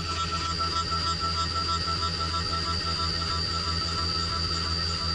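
A milling machine spindle whines steadily.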